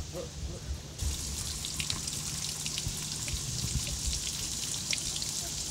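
Water trickles and splashes from a pipe outdoors.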